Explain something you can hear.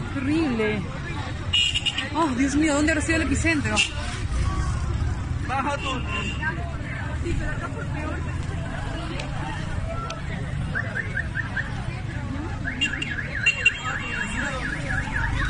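Men shout and talk excitedly nearby outdoors.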